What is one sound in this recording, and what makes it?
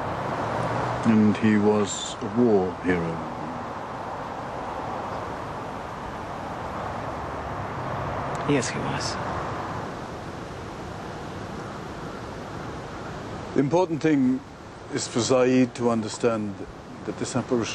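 An elderly man speaks calmly and earnestly, close by.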